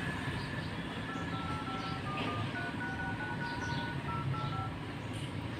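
A phone keypad beeps with short tones as numbers are dialed.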